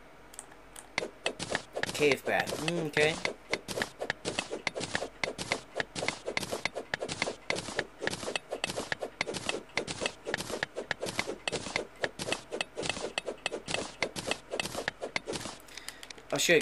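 A pickaxe chips rapidly at stone in quick repeated taps.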